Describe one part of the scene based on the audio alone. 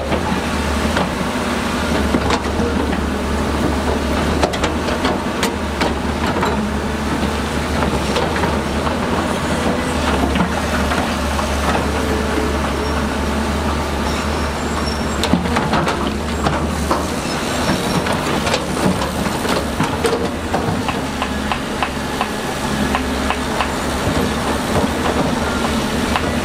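Bulldozer tracks clank and squeak over rocks.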